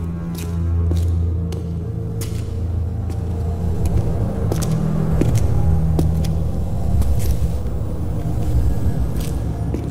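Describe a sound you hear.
Footsteps tap on stone steps in a large echoing hall.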